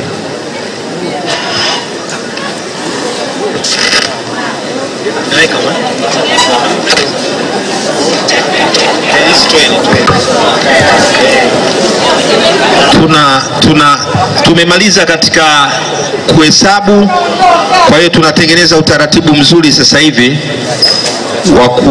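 A crowd murmurs and chatters in a large hall.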